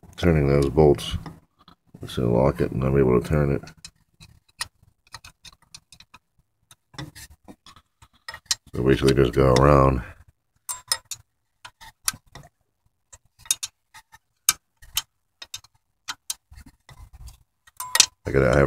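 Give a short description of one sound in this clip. A metal wrench clicks and scrapes against metal parts.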